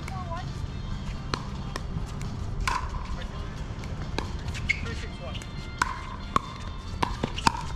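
Paddles strike plastic balls with sharp pops, again and again.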